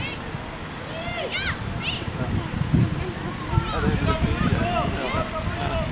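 Children shout and call to each other across an open field.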